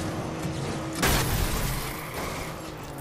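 A car crashes with a loud bang and scrape.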